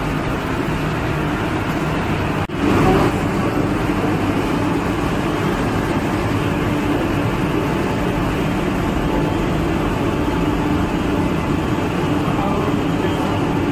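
Machinery hums steadily and loudly.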